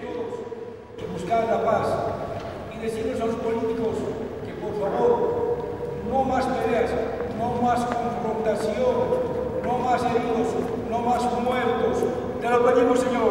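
A man sings loudly and with feeling in a crowd.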